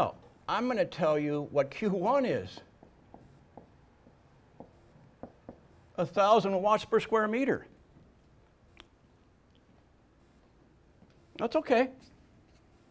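An elderly man lectures calmly.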